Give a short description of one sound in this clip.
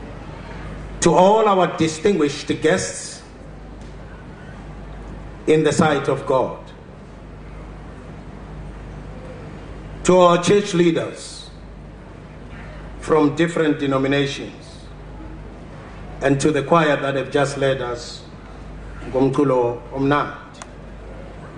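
A man speaks slowly and formally into a microphone through loudspeakers, in short phrases with pauses.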